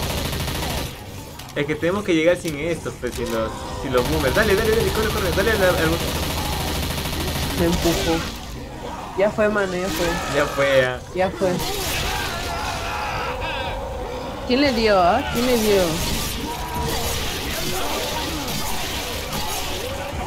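A monster roars and growls loudly.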